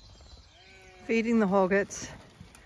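A sheep bleats loudly nearby.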